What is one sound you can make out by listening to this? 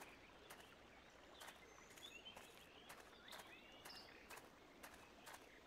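Footsteps scrape over rock.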